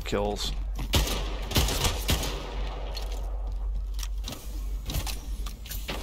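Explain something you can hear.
Rifle shots crack sharply several times.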